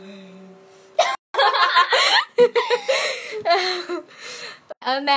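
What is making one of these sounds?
A young girl laughs loudly close by.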